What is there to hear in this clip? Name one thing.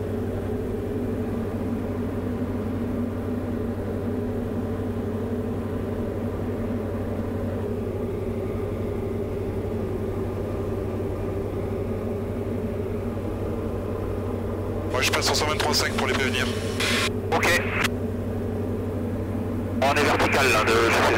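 A small plane's engine drones steadily from inside the cabin.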